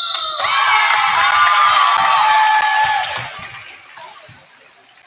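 A crowd cheers loudly in a large echoing gym, then dies down.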